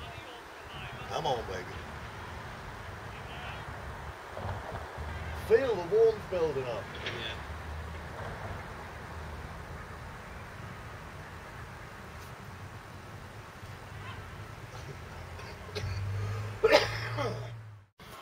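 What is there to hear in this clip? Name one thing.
A middle-aged man talks casually close by.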